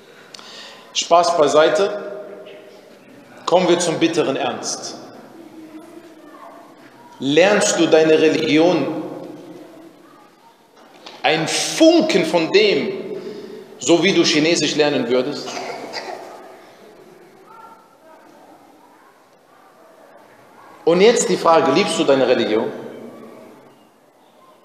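A man recites in long melodic phrases with a lingering echo, pausing between them.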